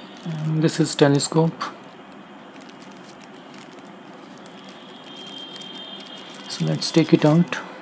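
A plastic wrapper crinkles.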